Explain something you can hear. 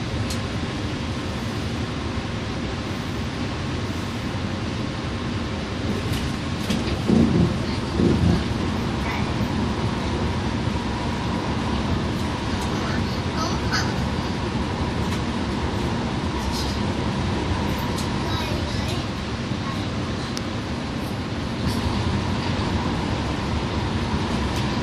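A bus engine rumbles steadily as it drives.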